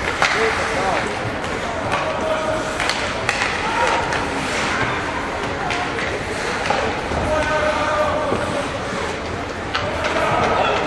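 Children shout to each other across an echoing rink.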